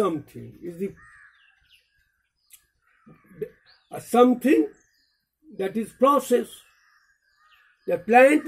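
An elderly man speaks calmly and clearly, close by, in short phrases with pauses.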